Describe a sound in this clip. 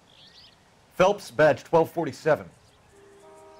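A man speaks calmly into a phone.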